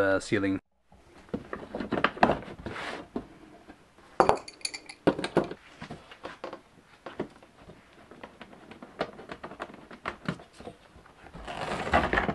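Hands knock and clatter against a hard frame.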